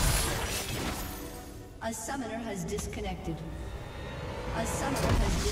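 Magic blasts whoosh and crash in a busy video game battle.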